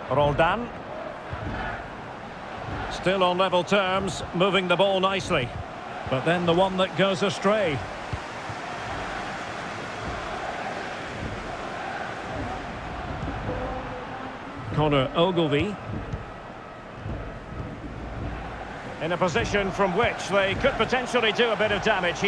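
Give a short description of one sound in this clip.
A large crowd murmurs and cheers steadily in a big stadium.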